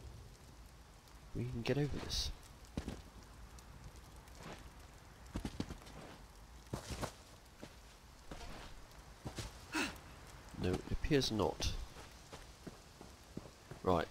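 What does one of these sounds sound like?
Footsteps crunch over rock and grass.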